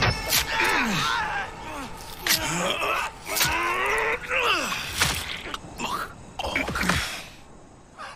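A man groans and cries out in pain up close.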